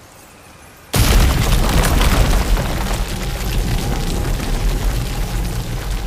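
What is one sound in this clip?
A heavy stone slab grinds and rumbles loudly.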